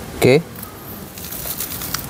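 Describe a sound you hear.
A foil seal crinkles under a finger.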